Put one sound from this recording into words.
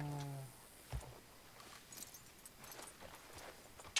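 A horse's hooves thud on dirt.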